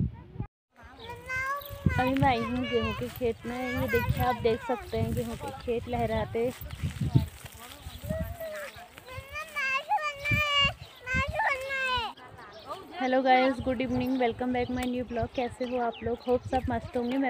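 A young woman speaks calmly close by.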